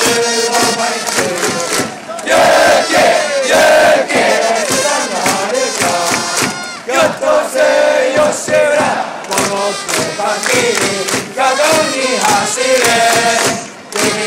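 A crowd claps along in rhythm.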